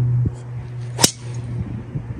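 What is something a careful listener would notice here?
A golf club strikes a ball with a sharp crack.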